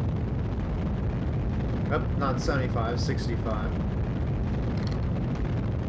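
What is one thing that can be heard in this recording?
A rocket engine roars with a steady, low rumble.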